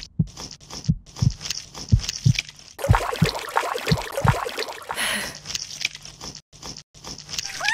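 Water splashes softly as an eel wriggles through shallow mud.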